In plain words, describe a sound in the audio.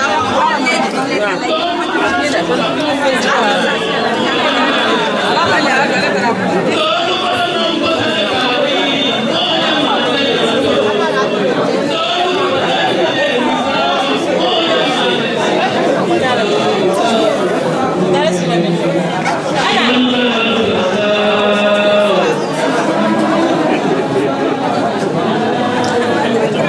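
A crowd of women and men chatter loudly all around.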